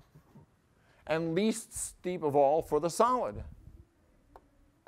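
A man speaks through a clip-on microphone, explaining.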